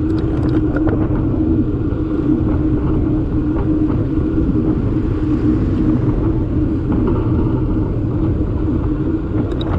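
Wind rumbles loudly and steadily against the microphone of a moving bicycle.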